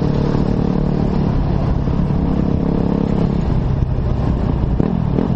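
A dirt bike engine revs loudly up close.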